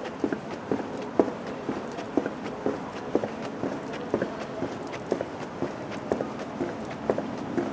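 Footsteps tap steadily on a hard pavement, outdoors.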